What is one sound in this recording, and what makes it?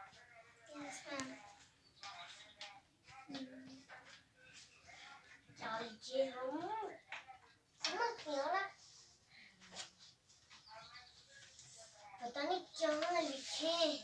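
Young children talk and chatter with animation close by, indoors.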